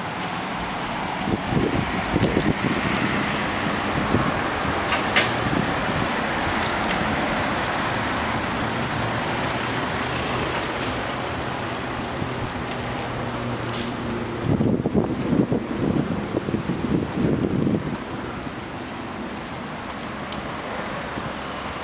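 Wind rushes steadily past, outdoors.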